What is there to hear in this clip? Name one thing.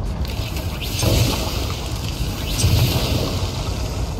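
Gunshots crack and boom.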